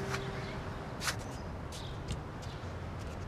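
Footsteps tread slowly on the ground.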